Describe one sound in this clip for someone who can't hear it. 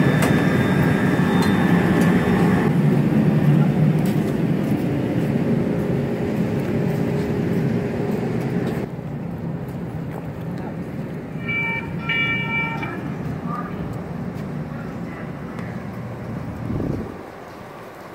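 An electric light rail train rumbles past up close and rolls off into the distance.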